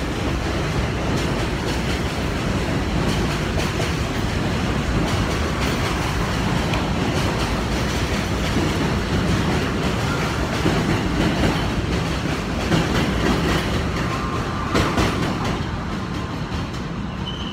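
A train rumbles past loudly, close by.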